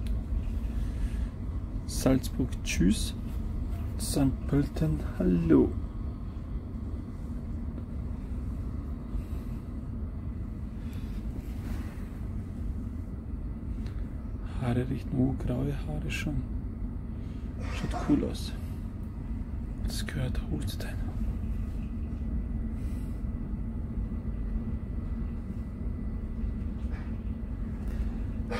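A low, steady rumble of a moving train fills the background.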